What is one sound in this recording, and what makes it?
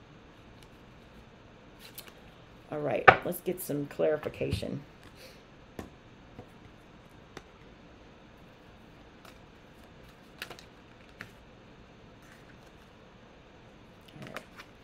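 Cards shuffle and tap together in quick clicks.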